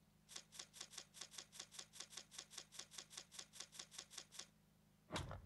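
Quick electronic ticks sound in a rapid, even series.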